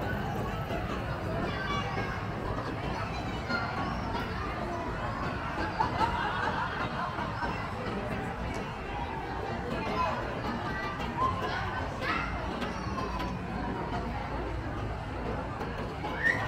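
Outdoors, a crowd of people chatters in the distance.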